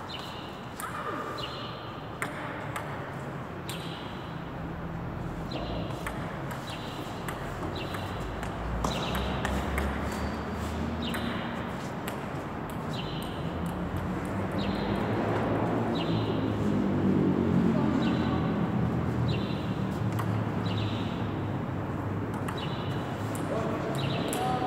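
A low rumble fills a large echoing hall.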